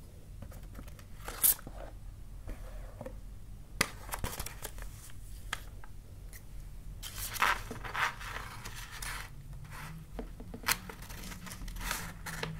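A plastic sheet crinkles and rustles as it is handled.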